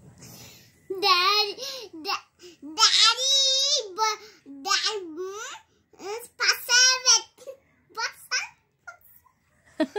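A young girl talks and laughs close by.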